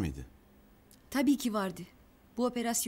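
A young woman speaks with worry nearby.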